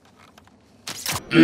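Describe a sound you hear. An arrow is loosed with a sharp twang.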